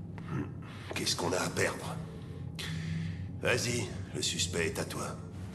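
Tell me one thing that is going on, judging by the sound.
An older man speaks gruffly.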